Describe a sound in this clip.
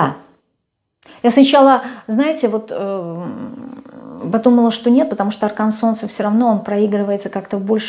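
A woman speaks calmly into a close microphone.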